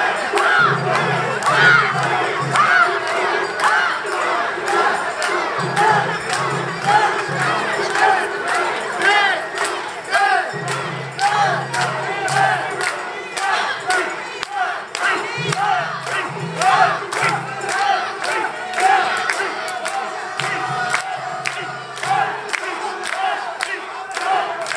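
A large crowd of men chants loudly in rhythm, close by.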